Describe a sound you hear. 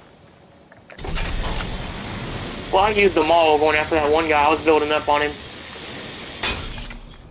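A zipline pulley hums and whirs steadily.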